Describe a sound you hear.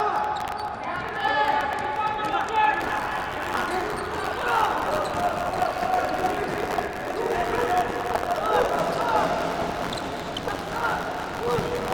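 A ball is kicked across an indoor court.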